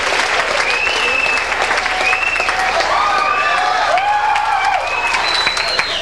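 A group of people claps their hands.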